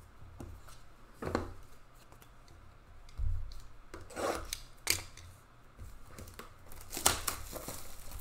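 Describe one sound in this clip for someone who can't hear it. Plastic card cases clack and rustle as hands handle them.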